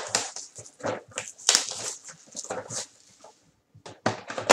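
A plastic wrapper crinkles as it is torn off.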